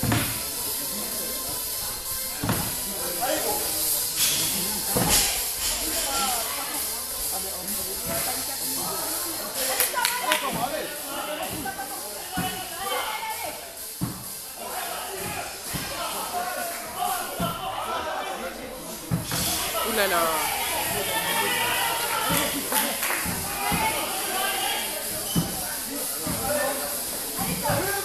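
Several men talk and call out to each other, echoing in a large hall.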